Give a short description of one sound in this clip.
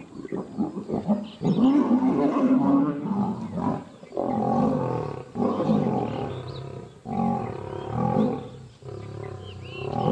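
Lions roar and snarl loudly as they fight.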